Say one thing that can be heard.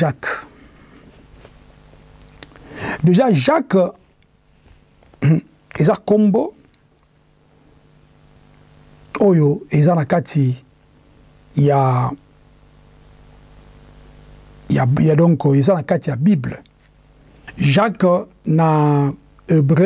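A man speaks calmly and with emphasis into a close microphone, in short bursts with pauses.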